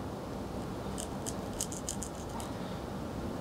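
A straight razor scrapes across stubble in short, crisp strokes, heard close up.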